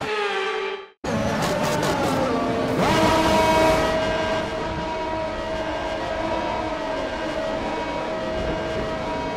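Racing cars crash together with a loud crunch.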